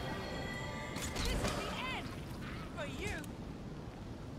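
Magic spells chime and whoosh in a game battle.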